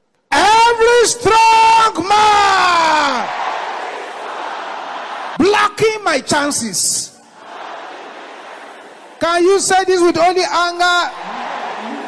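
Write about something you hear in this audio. A man preaches loudly through a microphone in short, forceful bursts that echo around a large hall.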